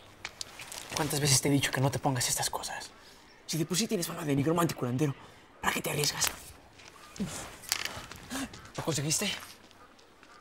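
A middle-aged man speaks in a low voice, close by.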